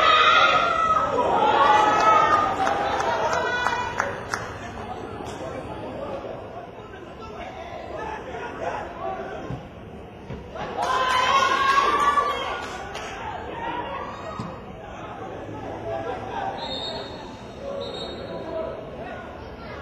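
A football thuds as players kick it across a pitch.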